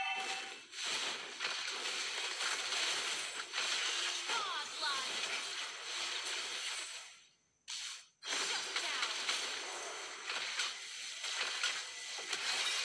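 Video game spell blasts and weapon hits crackle and burst.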